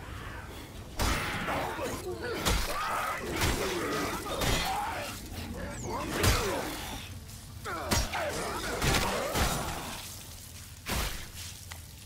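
Heavy blows land with sharp cracks and thuds.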